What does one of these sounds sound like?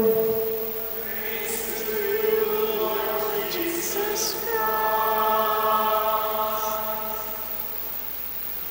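A crowd sings together in an echoing hall.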